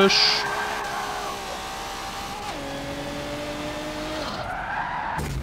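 A racing car engine whines loudly, rising in pitch and dropping with each gear change.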